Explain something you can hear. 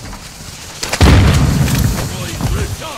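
A grenade explodes with a loud boom.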